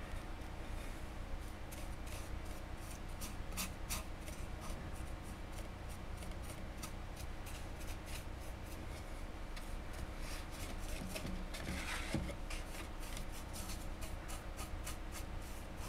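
A heavy metal stand scrapes and clicks as a hand turns it on a tabletop.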